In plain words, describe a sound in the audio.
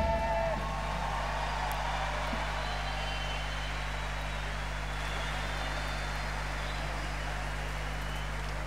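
An orchestra plays softly.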